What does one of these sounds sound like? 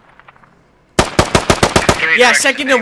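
A rifle fires a rapid burst of loud shots.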